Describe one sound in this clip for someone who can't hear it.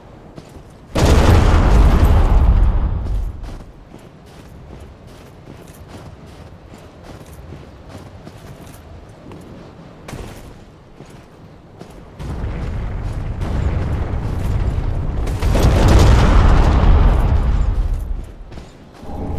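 Wind gusts and roars loudly, then dies down.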